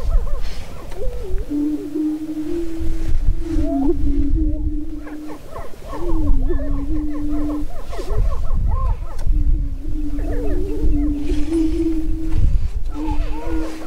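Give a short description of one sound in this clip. Prairie chickens cackle and whoop in sharp, rising cries.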